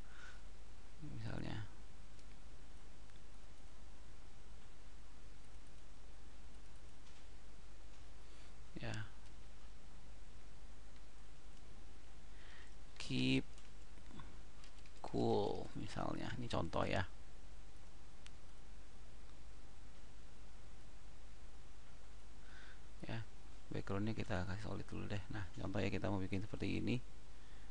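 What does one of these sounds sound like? A young man speaks calmly and haltingly into a close headset microphone.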